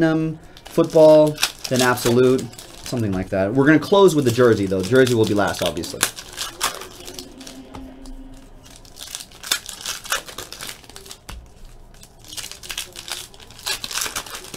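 Foil card wrappers crinkle and tear as packs are opened.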